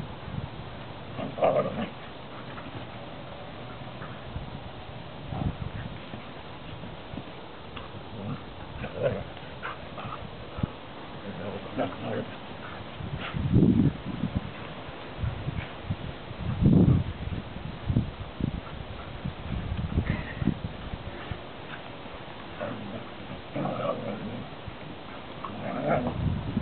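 Dogs run and scuffle across grass outdoors.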